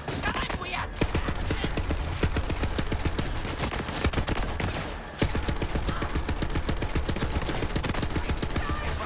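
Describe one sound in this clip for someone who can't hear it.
A futuristic gun fires rapid bursts of crackling energy shots.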